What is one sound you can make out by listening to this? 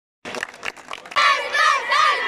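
A crowd of boys cheers and shouts excitedly nearby.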